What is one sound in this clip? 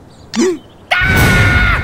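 A cartoon creature shrieks loudly.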